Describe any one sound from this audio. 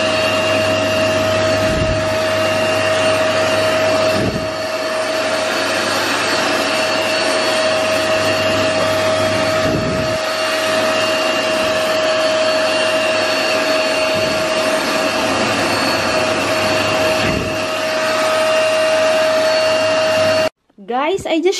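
A carpet cleaning machine whirs and sucks loudly and steadily, then cuts off.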